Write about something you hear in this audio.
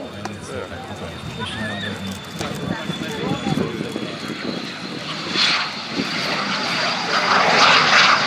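A jet engine whines with a high steady whistle as an aircraft passes close by.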